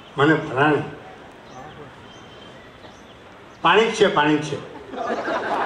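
An elderly man speaks slowly into a microphone, with long pauses.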